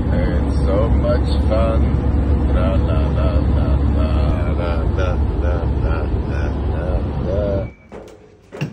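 A vehicle's engine and tyres rumble steadily on a highway.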